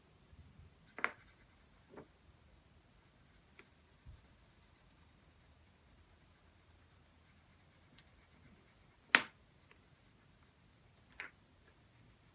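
Marker caps click and tap on a hard table.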